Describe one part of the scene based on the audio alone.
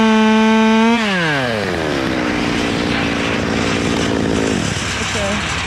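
A chainsaw idles steadily.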